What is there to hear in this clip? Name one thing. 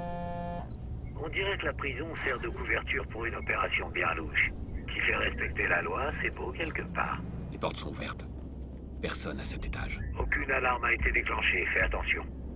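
A man speaks calmly over a phone.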